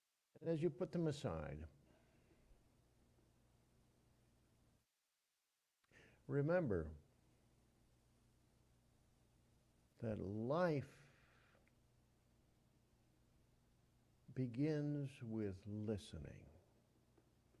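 An elderly man speaks slowly and with feeling into a microphone, in short phrases with long pauses.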